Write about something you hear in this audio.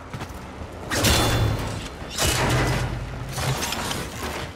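A deep explosion booms.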